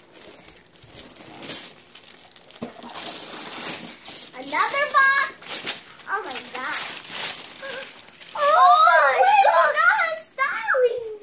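Wrapping paper rustles and tears close by.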